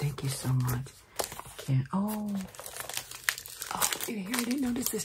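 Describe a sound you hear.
Paper and card rustle as they are handled.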